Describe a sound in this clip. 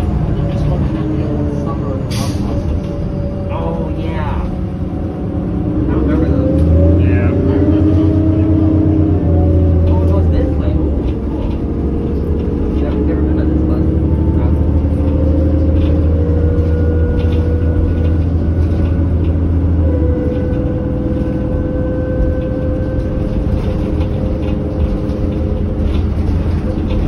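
A bus engine hums and whines steadily as it drives.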